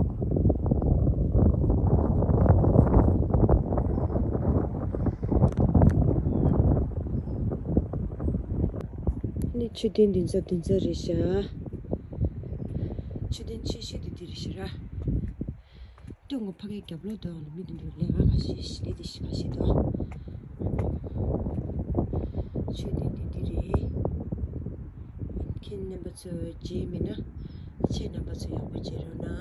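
Wind gusts outdoors and rumbles against the microphone.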